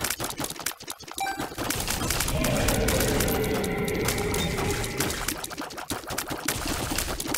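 Rapid game shots pop and thud in quick succession.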